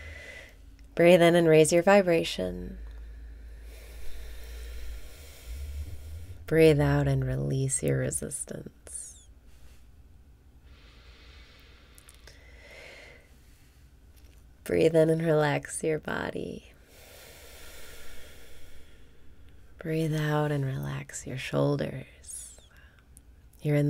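A young woman speaks softly and calmly close to a microphone, in short phrases with long pauses.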